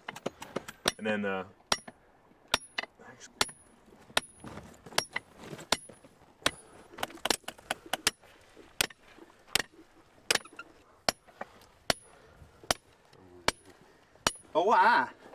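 A hammer taps sharply on hard plaster, again and again.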